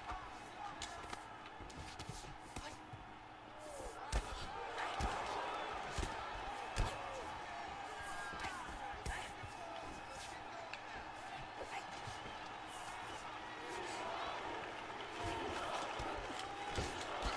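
Punches thud in quick, sharp hits.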